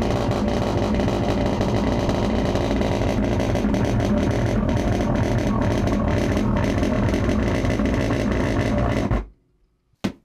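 Loud music plays through loudspeakers.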